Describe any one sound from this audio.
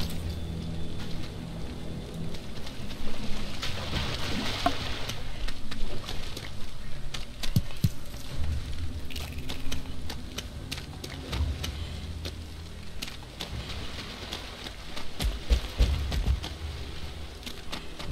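Footsteps squelch through shallow swamp water.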